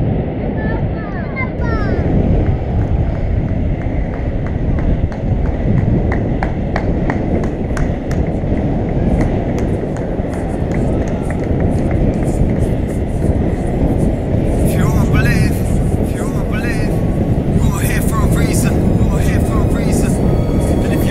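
Wheels roll and rumble over asphalt.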